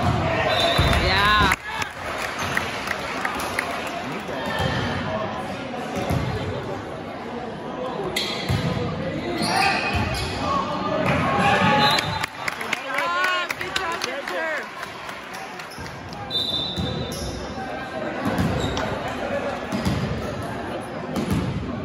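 A crowd of spectators chatters and cheers in a large echoing gym.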